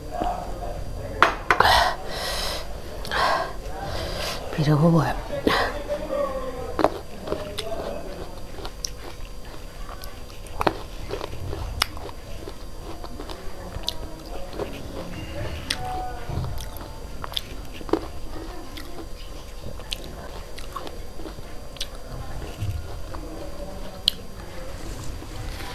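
Grapes clink against a ceramic plate.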